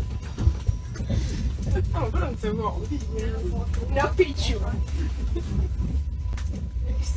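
A train rumbles steadily.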